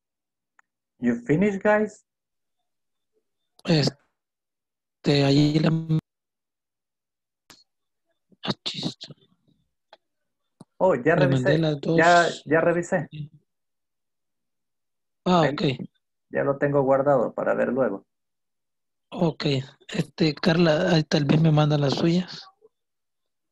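A man speaks calmly over an online call, in short bursts with pauses.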